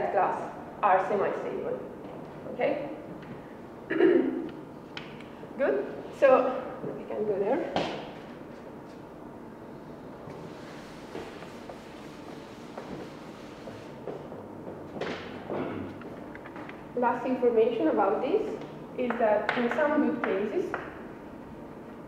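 A young woman lectures calmly in an echoing room.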